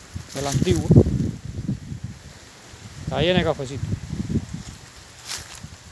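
Leafy branches rustle as they brush past.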